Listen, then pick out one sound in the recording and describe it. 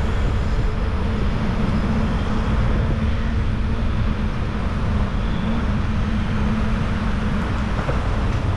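A truck engine drones as it drives by.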